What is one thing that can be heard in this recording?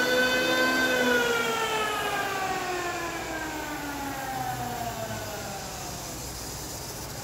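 An electric hand planer's motor winds down and falls silent.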